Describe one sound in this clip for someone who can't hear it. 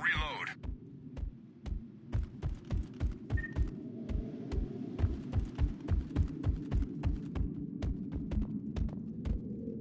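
Heavy armoured footsteps thud steadily on a metal floor.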